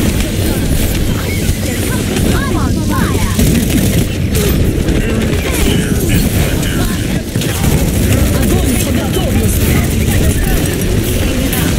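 Video game energy weapons crackle and zap in a busy fight.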